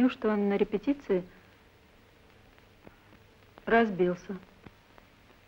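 A woman speaks in short, tense phrases close by.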